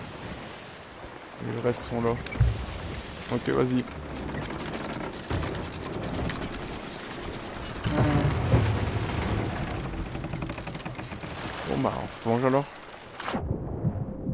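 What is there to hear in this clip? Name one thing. Wind and waves rush around a sailing ship at sea.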